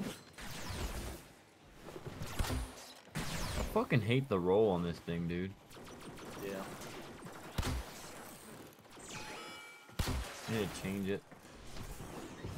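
A bow twangs as arrows are fired.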